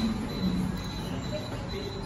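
A lift button clicks as it is pressed.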